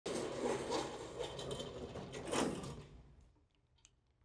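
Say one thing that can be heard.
Casters of a heavy stand roll across a hard floor.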